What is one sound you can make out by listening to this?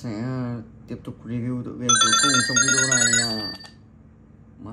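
A phone game plays bright electronic sound effects.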